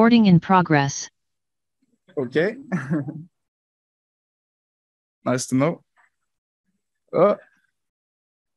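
A man speaks in short, halting phrases through a microphone.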